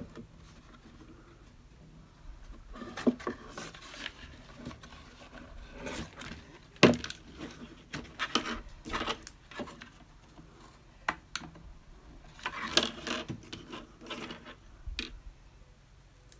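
A wire rustles and scrapes as it is bent.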